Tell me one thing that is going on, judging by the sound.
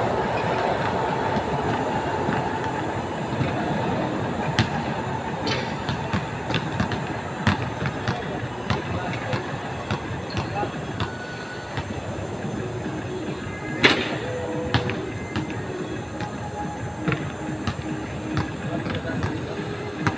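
Basketballs bounce on a hard outdoor court.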